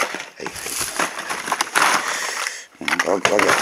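Plastic packages rattle and clatter as hands rummage through a box.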